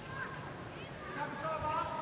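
Sports shoes squeak sharply on a court floor.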